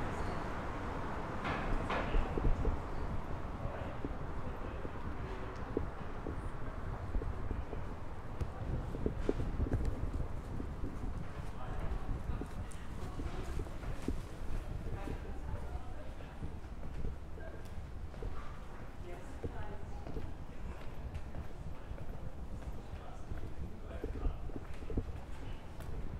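Footsteps tap on a stone pavement at a steady walking pace.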